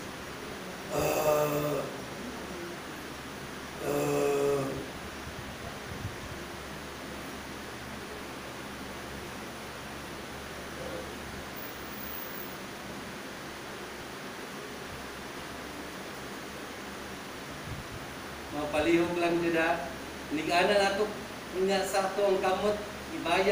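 A young man speaks calmly in short phrases.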